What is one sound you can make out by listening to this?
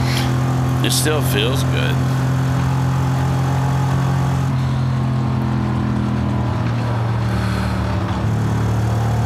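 A car engine drones steadily at speed.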